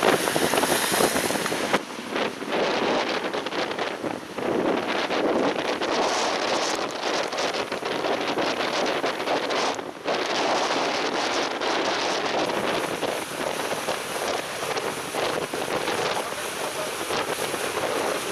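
Rough waves crash and splash against a boat's hull.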